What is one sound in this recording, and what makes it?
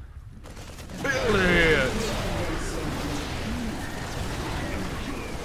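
Explosions and weapon fire from a video game battle burst loudly.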